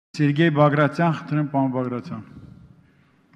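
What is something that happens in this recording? A man speaks calmly over a microphone.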